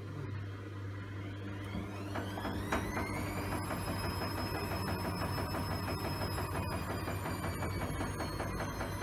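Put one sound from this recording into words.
A washing machine motor whines, rising in pitch as the drum speeds up to a spin, then holds a high steady whine.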